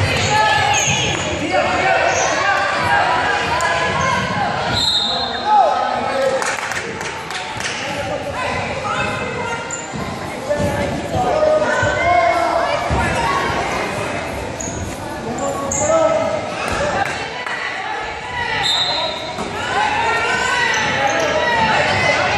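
Young girls shout and call out across an echoing gym.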